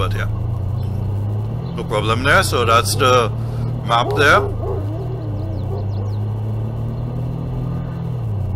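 A pickup truck engine hums steadily as it drives along.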